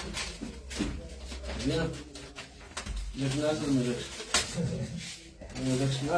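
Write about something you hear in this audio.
Plastic wrapping crinkles as a man unrolls it.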